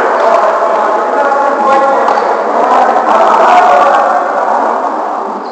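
Men and women call out and shout during a game, echoing through a large hall.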